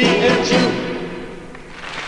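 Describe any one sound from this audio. A group of men and a woman sing together, holding a final note.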